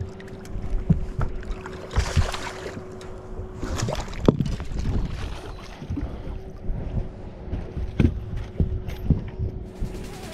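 A fish thrashes and flaps in a landing net.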